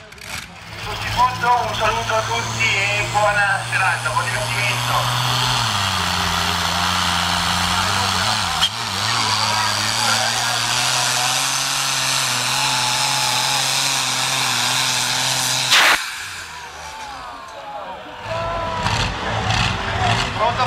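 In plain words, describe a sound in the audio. A tractor engine roars loudly and steadily, dropping in pitch partway through.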